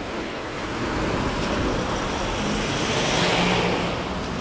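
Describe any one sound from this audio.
A truck engine rumbles close by.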